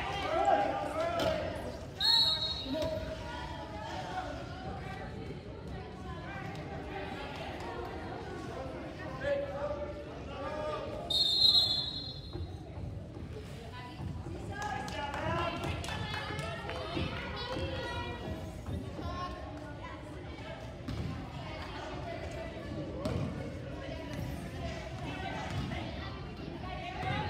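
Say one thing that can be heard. Wheelchair wheels squeak and roll on the wooden floor.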